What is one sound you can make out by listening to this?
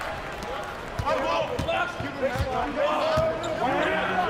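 A basketball bounces in steady dribbles on a hard court.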